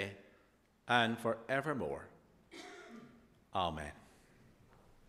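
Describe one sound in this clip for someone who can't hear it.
A middle-aged man preaches with animation through a microphone.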